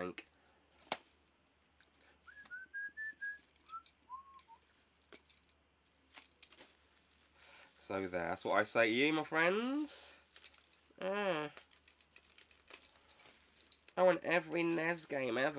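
Plastic packaging crinkles and clicks in a man's hands.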